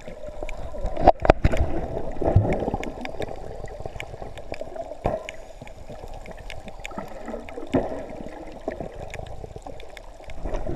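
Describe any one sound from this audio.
A snorkeler breathes out, sending bubbles gurgling close by.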